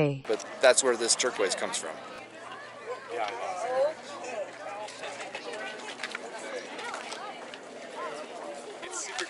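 People chatter in the background outdoors.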